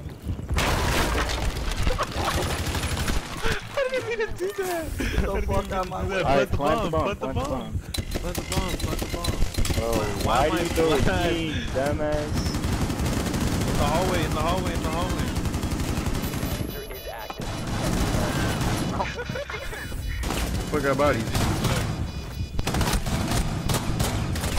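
Rapid gunshots crack in bursts.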